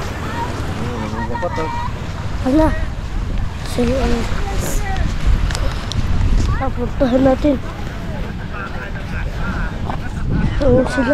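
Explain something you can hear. Children shout and call out in the distance.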